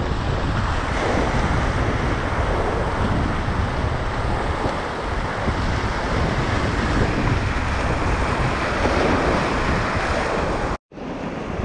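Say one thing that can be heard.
A paddle splashes into the water.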